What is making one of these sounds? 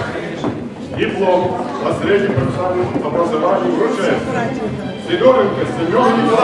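An older man speaks calmly into a microphone over a loudspeaker in an echoing hall.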